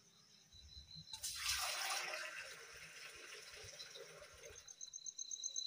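Water splashes out of a bowl into a metal pail.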